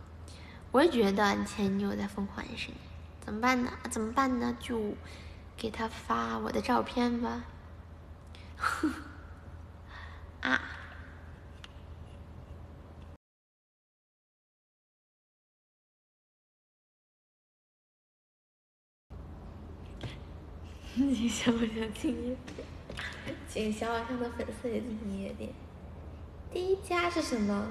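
A young woman speaks close to a microphone in a soft, playful voice.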